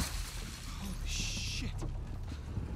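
A man swears under his breath.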